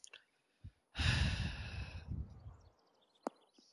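A golf club swings and strikes a ball with a loud whoosh.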